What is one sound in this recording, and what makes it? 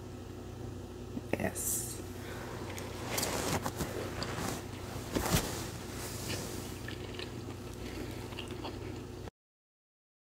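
A fork clinks and scrapes against a plate.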